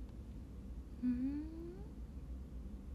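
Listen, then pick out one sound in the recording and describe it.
A young woman makes a short, rising questioning hum close by.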